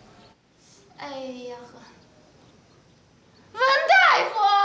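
A woman speaks up with emotion, close by.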